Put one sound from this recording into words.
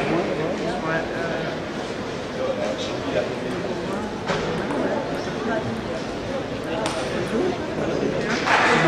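Table tennis balls click sharply on tables and paddles.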